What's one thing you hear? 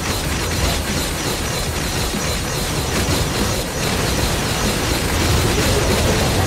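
Rapid electric zaps and blasts crackle from a game battle.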